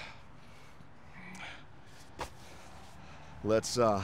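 A heavy sandbag thuds onto the ground.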